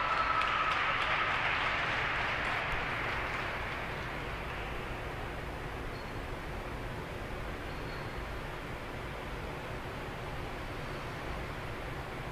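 Ice skates glide and scrape across the ice.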